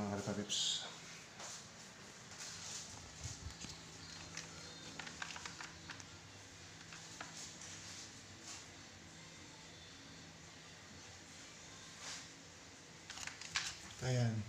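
Fabric rustles as a phone is moved around.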